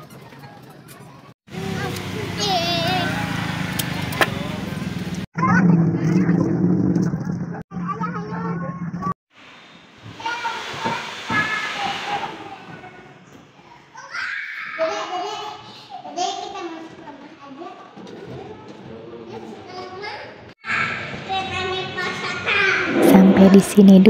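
A young child talks close by.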